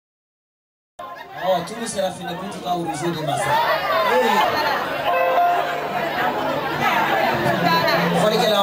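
A crowd of men and women chatters loudly nearby.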